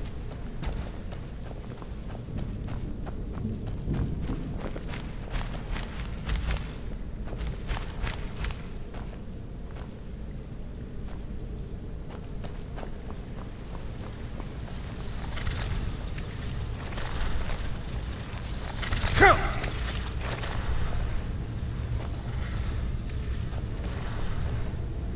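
A low rumbling drone hums steadily.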